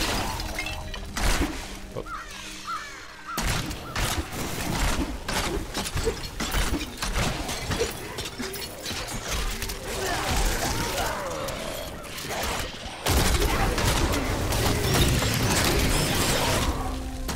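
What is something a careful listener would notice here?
Magic blasts and blows crash and thud in a fast fight.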